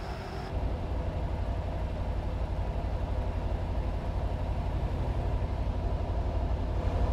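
Tyres roll on a road with a steady hum.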